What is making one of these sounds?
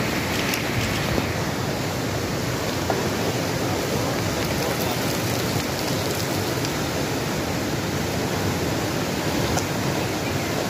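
A fast mountain river rushes loudly over rocks.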